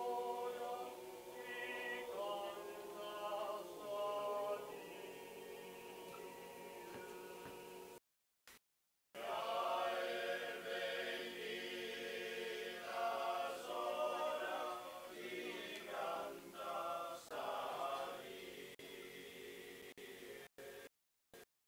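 A group of men sings together in close harmony, with deep droning voices.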